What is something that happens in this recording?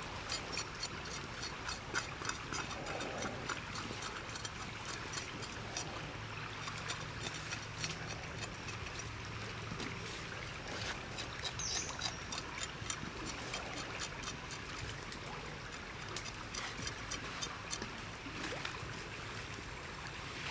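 A knife blade scrapes and taps against raw flesh and shell.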